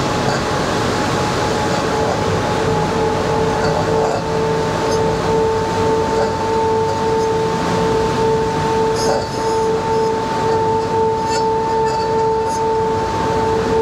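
Light taps of a small tool knock on a hard object.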